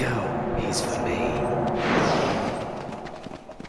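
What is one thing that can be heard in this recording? A loud magical whoosh and crash sweeps through.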